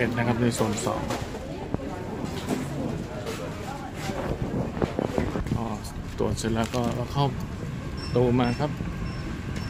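People in a crowd murmur and chatter.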